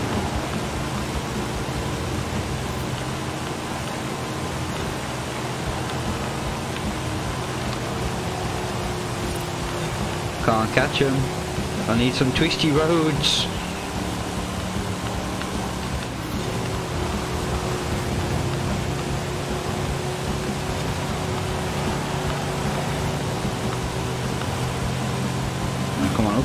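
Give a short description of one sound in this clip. A car engine hums steadily at high speed.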